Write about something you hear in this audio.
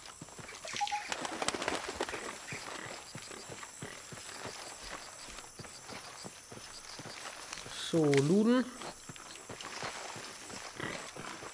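Footsteps crunch on leaves and dirt.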